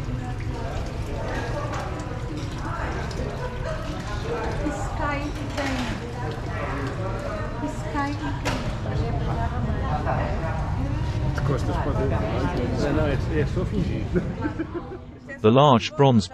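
Men and women chatter and murmur around nearby.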